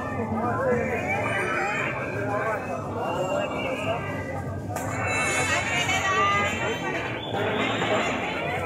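A crowd of men and women chatter and call out outdoors.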